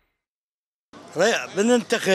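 An elderly man speaks with animation.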